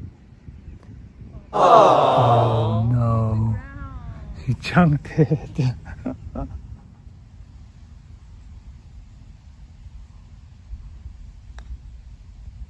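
A golf club chips a ball off short grass.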